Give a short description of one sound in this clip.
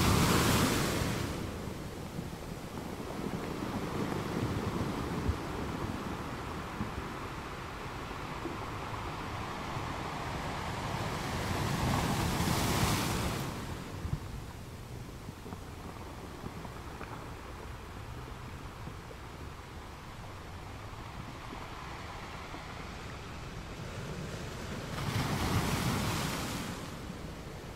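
Ocean waves roll in and crash on rocks, swelling and fading.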